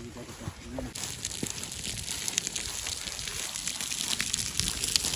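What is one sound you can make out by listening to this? Dry grass rustles and crunches underfoot.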